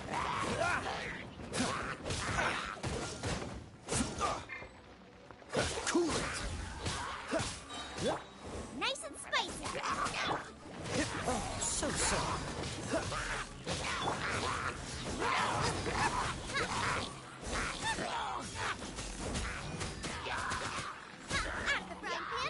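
Fiery blasts and sword strikes crash in quick bursts.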